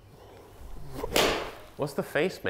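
A golf club swishes and strikes a ball.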